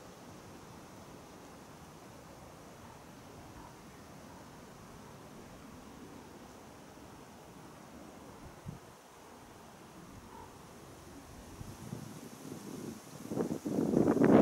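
Wind blows outdoors, gusting louder toward the end.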